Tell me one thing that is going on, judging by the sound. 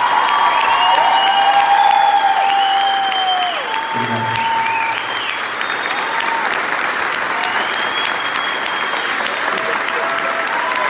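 A man sings through a microphone in a large hall.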